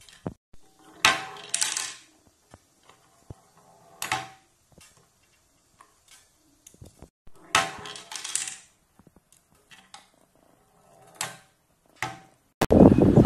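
Small plastic bowling pins clatter as a ball knocks them over.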